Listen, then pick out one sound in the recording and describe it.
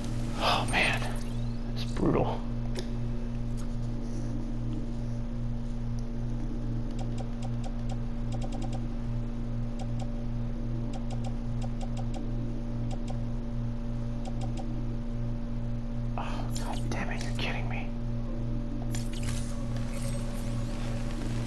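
Short electronic menu clicks tick in quick runs.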